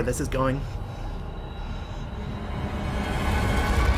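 A middle-aged man speaks tensely, close by.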